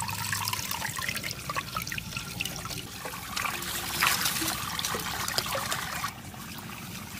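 Water flows through a bamboo pipe and splashes into a muddy pool.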